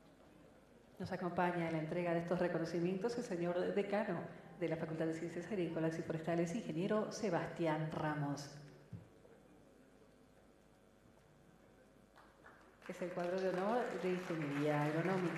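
A man speaks through a loudspeaker, reading out in a large echoing hall.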